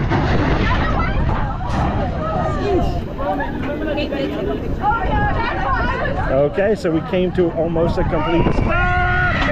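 Young men and women chatter and laugh close by.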